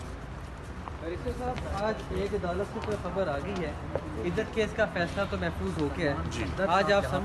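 Several men talk close by with animation.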